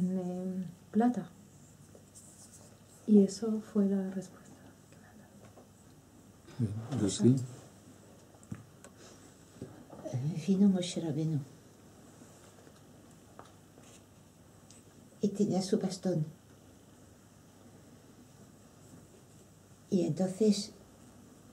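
A middle-aged man speaks calmly in short phrases close by, with pauses between them.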